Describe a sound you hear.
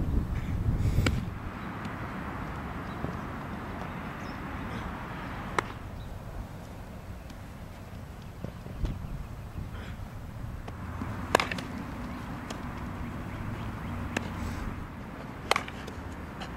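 A baseball smacks into a leather glove with sharp pops.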